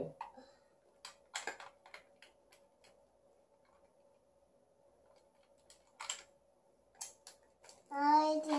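Plastic toy bricks clatter and click as a young child rummages through them.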